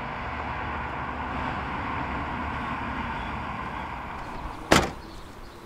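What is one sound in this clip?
Cars pass by on a road.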